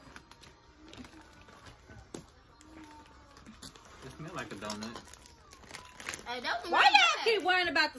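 A plastic snack bag crinkles and rustles close by.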